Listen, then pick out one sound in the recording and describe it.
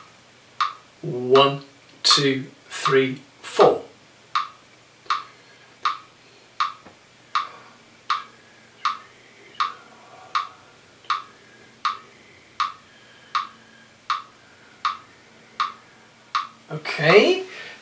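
A man speaks close by, calmly and clearly.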